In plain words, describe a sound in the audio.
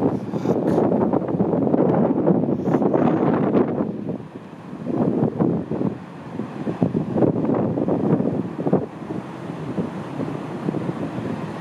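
Heavy waves crash and roar in a stormy sea.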